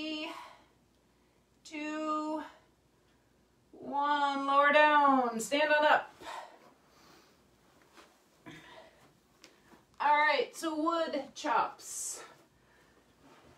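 A woman speaks with animation close by, with pauses.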